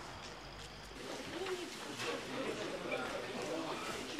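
Men talk quietly in a large hall.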